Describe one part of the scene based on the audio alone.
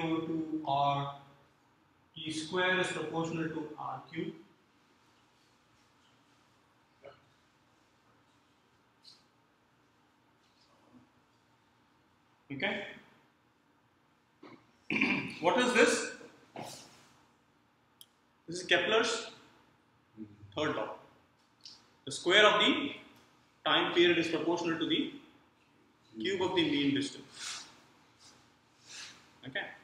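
A man lectures calmly close by.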